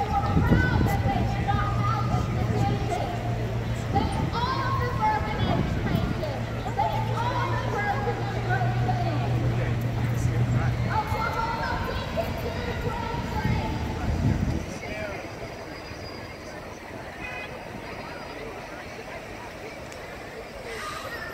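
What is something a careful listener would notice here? A crowd of people chatters outdoors in the distance.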